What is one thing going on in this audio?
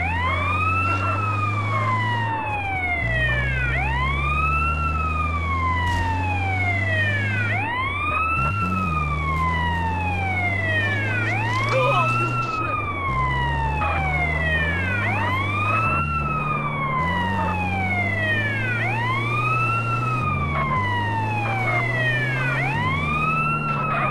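An ambulance siren wails in a rising and falling pattern, over and over.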